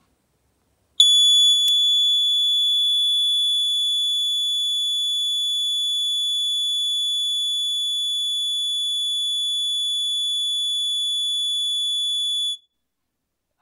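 An electronic buzzer sounds a steady, piercing high tone.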